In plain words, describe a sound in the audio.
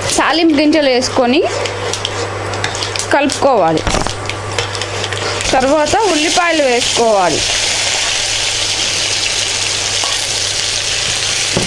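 A spoon scrapes and taps against a frying pan.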